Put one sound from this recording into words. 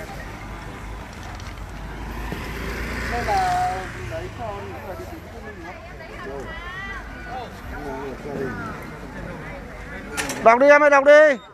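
A large crowd chatters outdoors, with many voices overlapping.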